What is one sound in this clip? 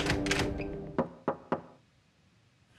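A door handle clicks and a door latches.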